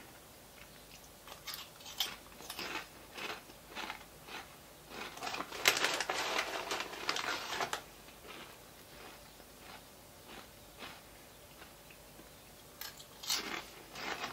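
A man crunches on a chip.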